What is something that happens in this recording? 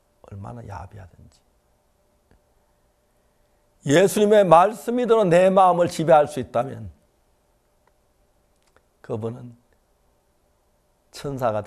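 An elderly man speaks calmly and clearly into a close microphone, with pauses.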